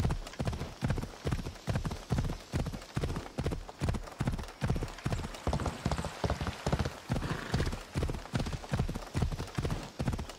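A horse's hooves thud steadily in a fast rhythm on a dirt path.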